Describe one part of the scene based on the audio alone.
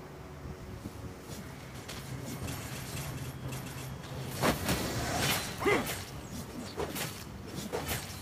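Game sound effects of fighting, spells and hits clash in quick bursts.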